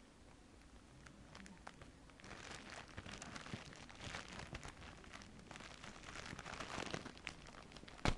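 Scissors snip through thin plastic.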